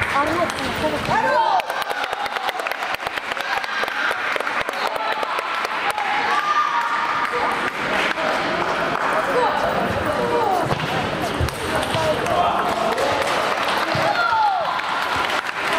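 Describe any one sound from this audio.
People chatter in a large echoing hall.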